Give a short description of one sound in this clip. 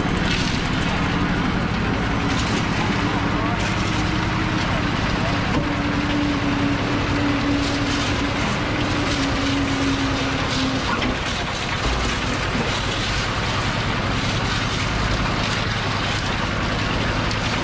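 A concrete mixer drum rumbles and churns steadily.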